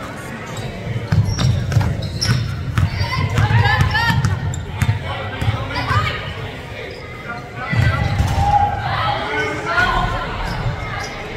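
A basketball bounces on a wooden court, echoing in a large hall.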